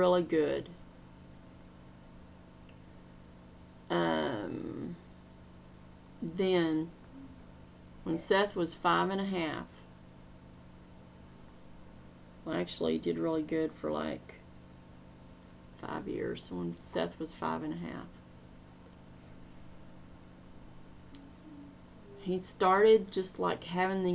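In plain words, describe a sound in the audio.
A middle-aged woman speaks calmly and close to a microphone, in short phrases with pauses.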